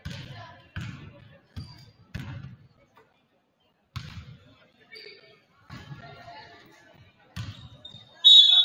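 A basketball bounces on a wooden floor with booming thuds in a large echoing gym.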